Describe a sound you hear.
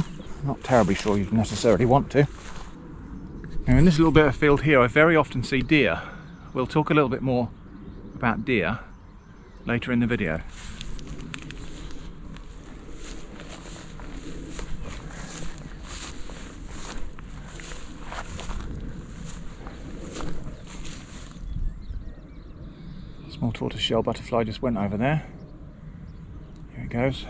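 Wind blows outdoors, rustling the grass.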